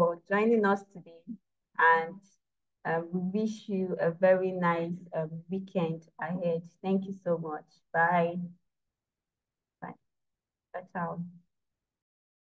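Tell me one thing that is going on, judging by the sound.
A young woman speaks calmly through an online call.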